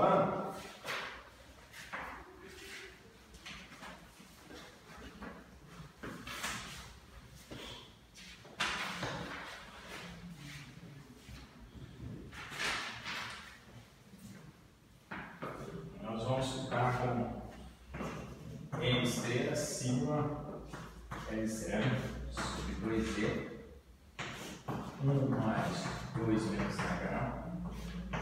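A middle-aged man lectures calmly.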